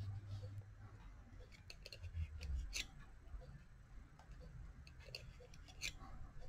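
A metal hook clicks and scrapes against yarn and wooden pegs.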